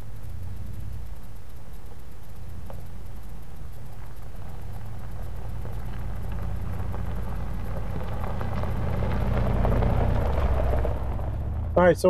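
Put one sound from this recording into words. An engine rumbles as a vehicle approaches and drives past.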